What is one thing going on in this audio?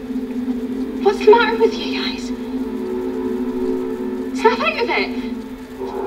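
A teenage girl speaks sharply, close by.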